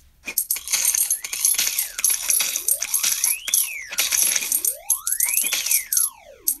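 Swooping game tones rise and fall.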